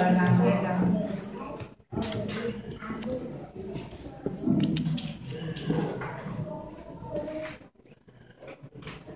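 Cardboard puzzle pieces slide and tap softly on a table.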